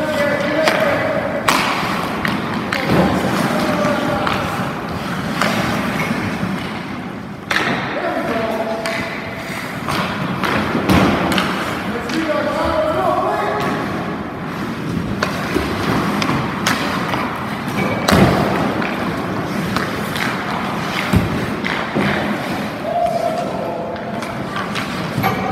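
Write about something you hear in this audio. Hockey skates scrape and carve on ice as a goaltender pushes across the crease.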